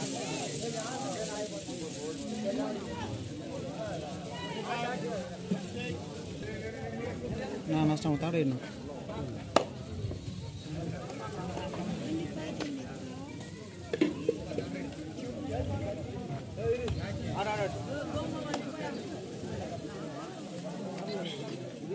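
A crowd of young men chatters and shouts outdoors.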